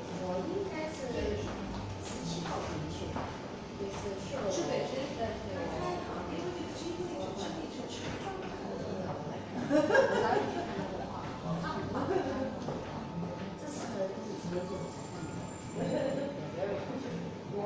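Bare feet shuffle and thump softly on a hard floor.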